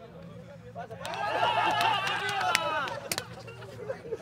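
Young men shout and cheer together outdoors.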